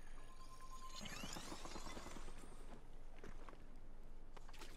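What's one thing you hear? Ice crackles as a block of ice forms on water.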